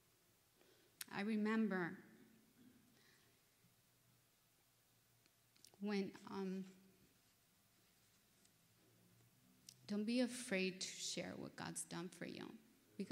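A woman speaks calmly into a microphone, with pauses between phrases.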